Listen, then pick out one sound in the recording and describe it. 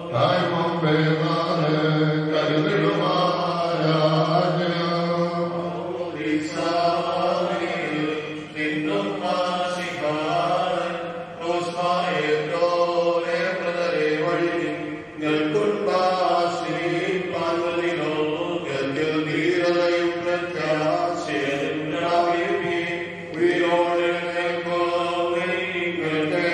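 A group of women and men sing a slow hymn together.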